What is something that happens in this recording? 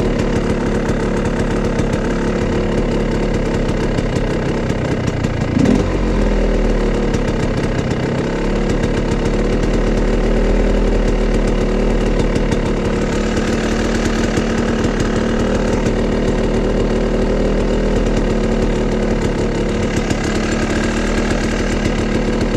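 A dirt bike engine idles close by with a steady, rattling rumble.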